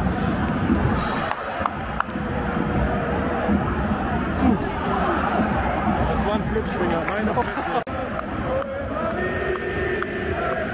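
A large stadium crowd roars and chants loudly all around.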